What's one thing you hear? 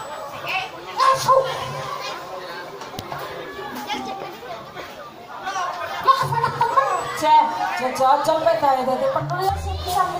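A crowd murmurs and chatters in the open air.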